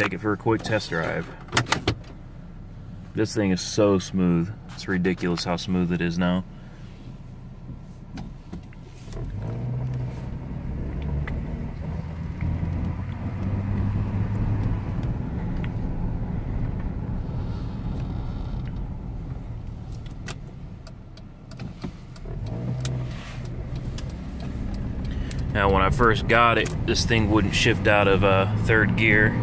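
A car engine hums low inside the car.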